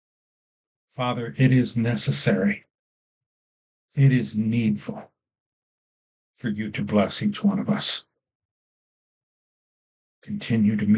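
An older man speaks calmly and slowly, close to a microphone, with pauses.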